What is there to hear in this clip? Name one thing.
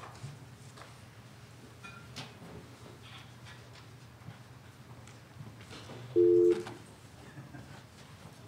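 Footsteps shuffle as a man walks away.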